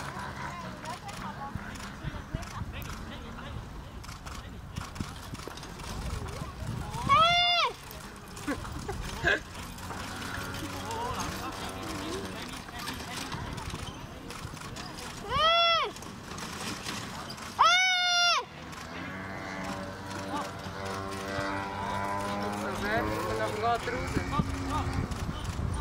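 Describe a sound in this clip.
Horse hooves thud on grass as a carriage passes.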